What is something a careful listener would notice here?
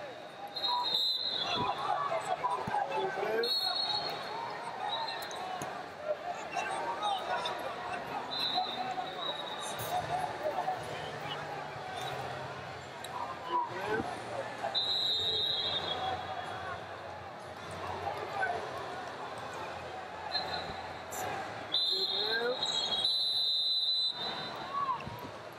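A referee blows short whistle blasts.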